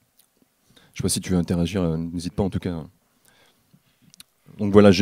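A man speaks into a microphone over loudspeakers, calmly and in short phrases.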